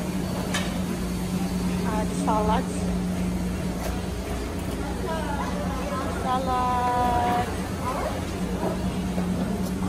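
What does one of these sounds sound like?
Serving utensils clink against metal trays.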